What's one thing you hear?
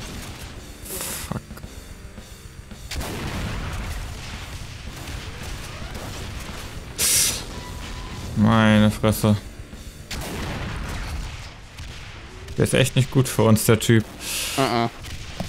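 A shotgun fires with loud blasts.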